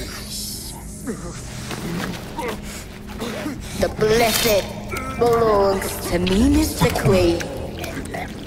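A woman speaks in a low, menacing voice close by.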